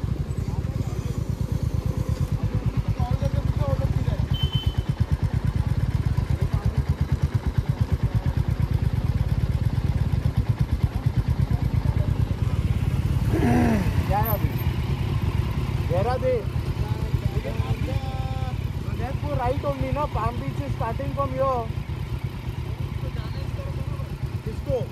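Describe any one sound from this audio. A motorcycle engine idles with a steady low throb close by.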